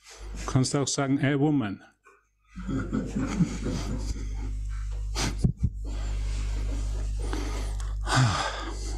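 A man reads aloud calmly.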